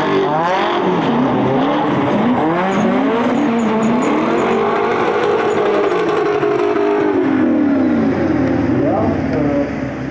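Car engines roar and rev hard as they race.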